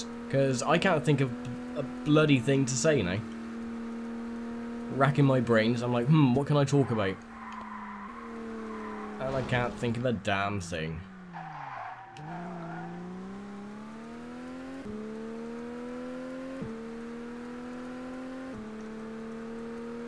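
A car engine hums steadily and revs up and down through the gears.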